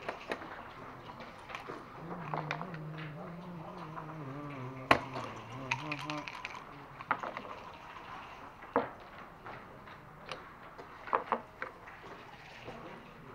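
Game pieces clack against a board.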